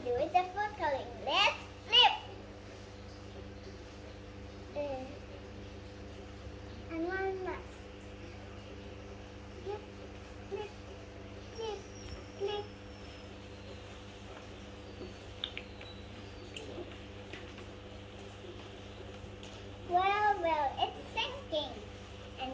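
A young girl speaks cheerfully close by.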